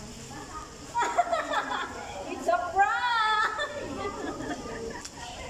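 Two young women laugh loudly together.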